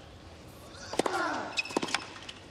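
A tennis ball is struck hard with a racket.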